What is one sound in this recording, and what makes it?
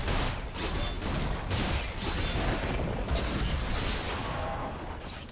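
Spell effects whoosh and crackle in a fast fight.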